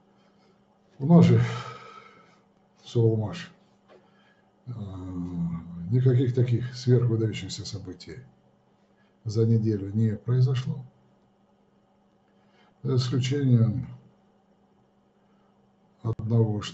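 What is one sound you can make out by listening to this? An elderly man speaks calmly in short phrases, heard close through a microphone.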